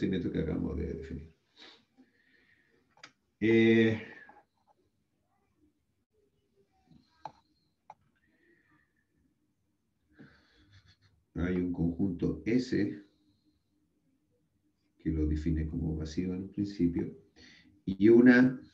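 A man speaks calmly through a microphone, as if giving a lecture over an online call.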